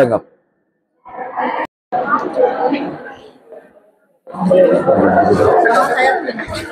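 Several people chatter around at once.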